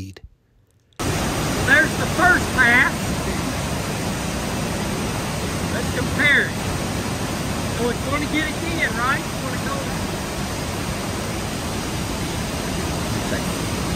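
Machinery hums steadily in a large room.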